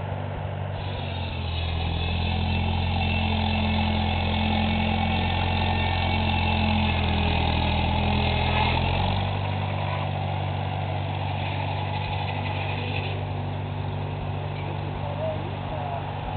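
An old engine chugs steadily nearby.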